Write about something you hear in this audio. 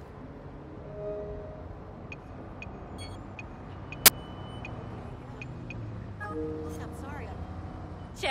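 A phone gives short electronic beeps and clicks.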